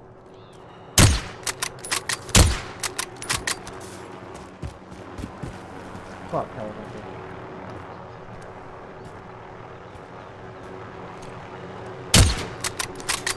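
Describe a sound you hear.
A rifle fires loud, sharp shots that echo.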